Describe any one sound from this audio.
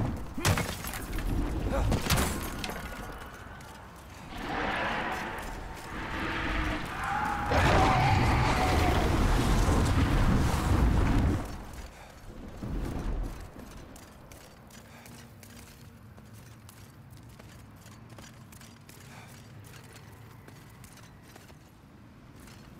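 Armoured footsteps clank steadily on stone.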